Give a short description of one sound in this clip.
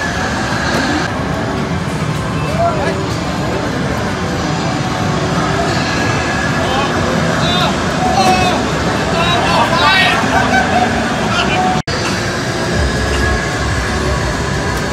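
A busy crowd chatters in a noisy hall.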